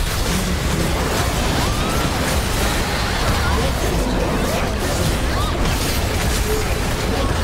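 Game spell effects crackle and blast in a fast-paced fight.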